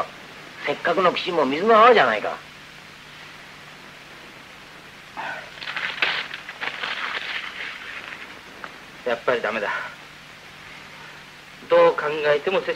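A second man answers in a low voice.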